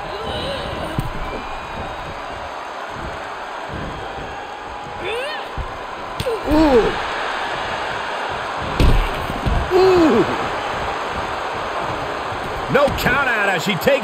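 Blows and body slams thud on a wrestling ring.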